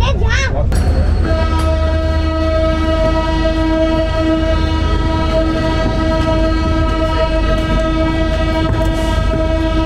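A train rumbles along steadily.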